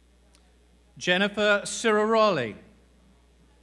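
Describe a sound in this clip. A man announces clearly over a loudspeaker in a large hall.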